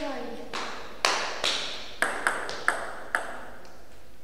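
A small ball bounces on a table during a serve.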